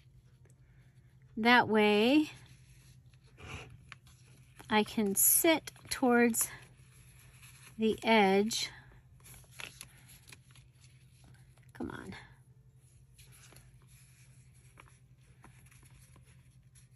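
Paper and fabric rustle softly as hands handle them.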